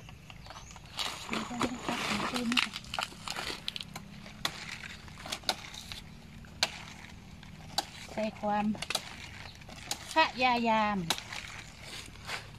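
Large leaves rustle and stalks snap as they are pulled.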